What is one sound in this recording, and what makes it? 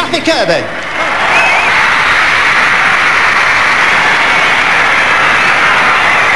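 A crowd cheers and screams loudly.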